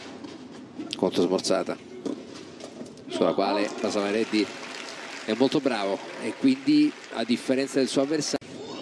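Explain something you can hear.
A crowd claps and cheers after the rally.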